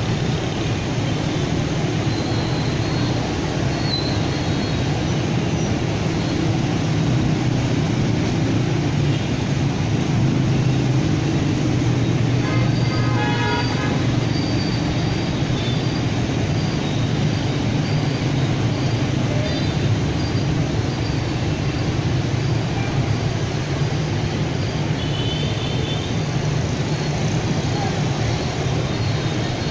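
Dense traffic of motorbikes and cars roars steadily along a busy street.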